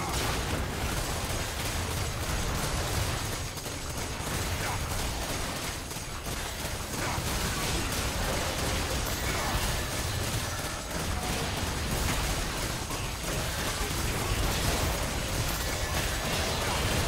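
Magic blasts crackle and boom during a fight.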